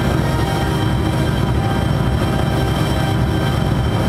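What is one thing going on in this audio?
An electric guitar plays loud, distorted chords.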